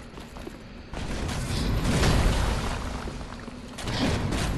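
Flames burst with a roar.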